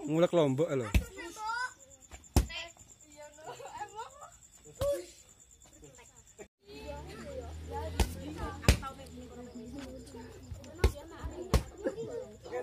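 Kicks thud sharply against a padded shield.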